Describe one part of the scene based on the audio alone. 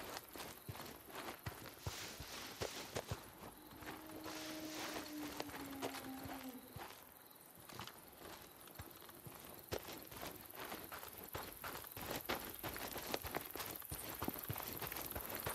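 Footsteps crunch on dry grass and dirt.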